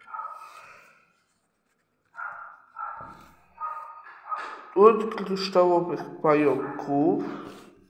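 Paper cards slide and rustle against one another.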